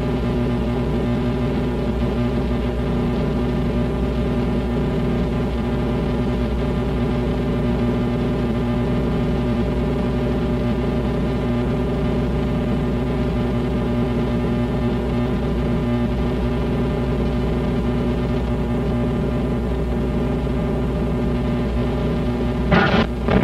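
A rock band plays loudly, heard through a muffled, hissy recording.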